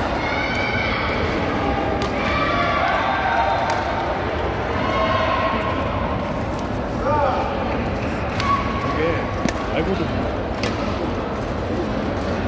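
Many people talk and call out in a large echoing hall.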